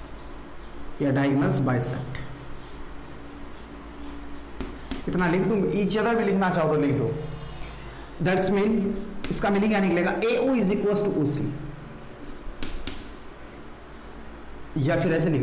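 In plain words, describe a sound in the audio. A young man speaks clearly and calmly, as if teaching.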